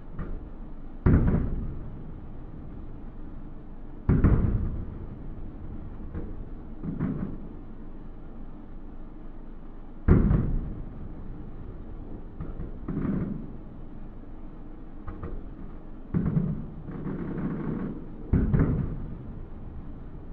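Fireworks boom loudly in the distance, echoing and rumbling away.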